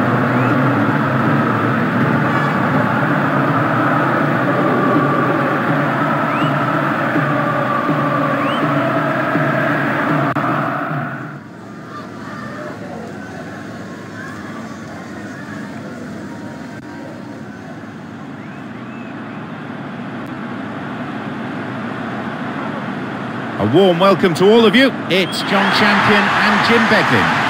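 A large crowd roars and cheers in a stadium.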